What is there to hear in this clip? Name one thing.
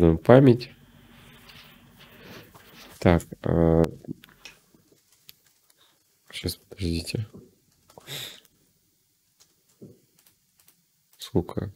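A young man speaks casually into a close microphone, in short bursts with pauses.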